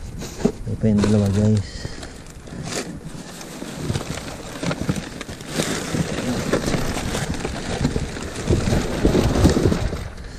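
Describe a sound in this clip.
Cardboard boxes and packages scrape and thump against each other.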